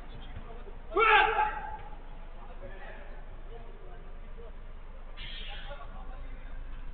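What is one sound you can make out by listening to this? Men shout to each other, heard from a distance.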